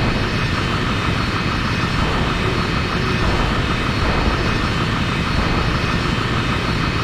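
Jet engines of a flying airship roar steadily.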